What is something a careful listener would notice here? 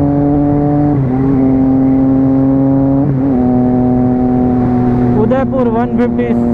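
A motorcycle engine hums steadily, briefly dropping in pitch as it shifts gears.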